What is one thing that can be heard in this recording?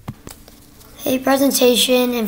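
A young boy speaks close to a microphone.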